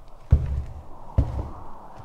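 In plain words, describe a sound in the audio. Sneakers step on a hard floor.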